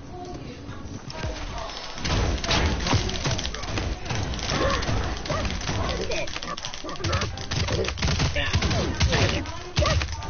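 Rapid gunfire crackles loudly.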